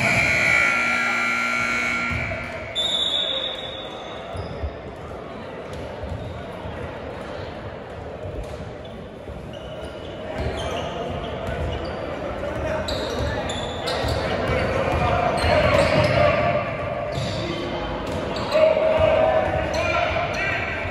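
A crowd of spectators murmurs and cheers in a large echoing gym.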